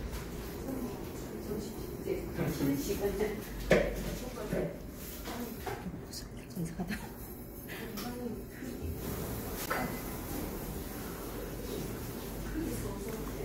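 Wet clay squelches and rubs under hands.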